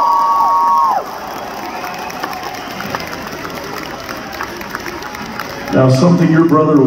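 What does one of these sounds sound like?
A large crowd cheers and murmurs.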